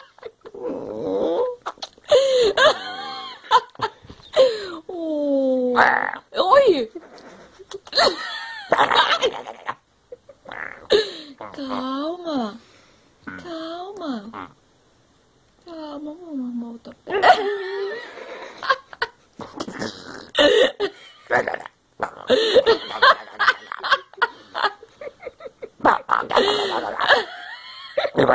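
A baby monkey squeals and chatters close by.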